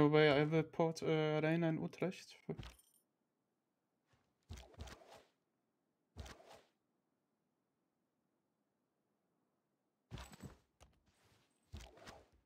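A young man talks into a close microphone in short bursts.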